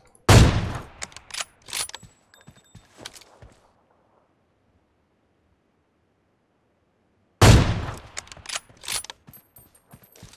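A rifle bolt clacks as it is worked back and forth.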